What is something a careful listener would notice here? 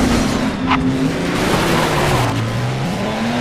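Tyres skid and crunch over gravel.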